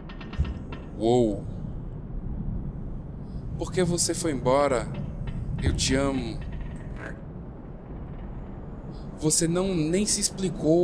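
A young man talks in short bursts close to a microphone.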